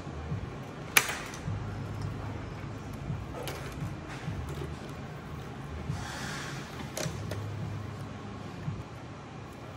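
Metal parts clack and knock as a computer is taken apart by hand.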